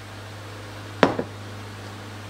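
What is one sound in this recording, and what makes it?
A measuring spoon knocks against a pot.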